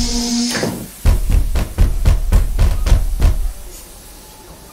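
Fists bang on a train's door window.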